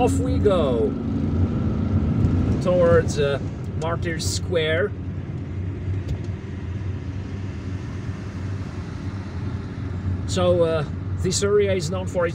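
A car engine hums steadily while driving through traffic.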